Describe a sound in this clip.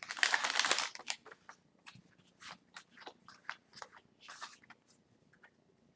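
Cards rustle and slide against each other.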